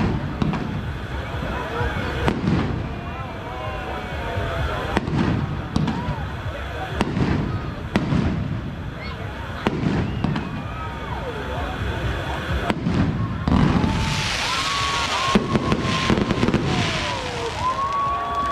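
Fireworks burst with deep booms.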